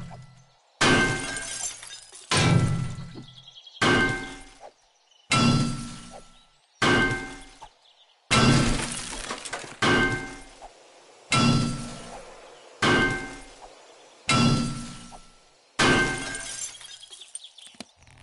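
A pickaxe strikes stone over and over in steady blows, each ringing briefly.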